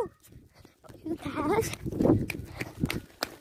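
A young boy talks with animation close to the microphone.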